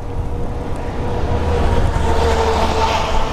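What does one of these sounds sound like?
A truck drives alongside with a loud rumble.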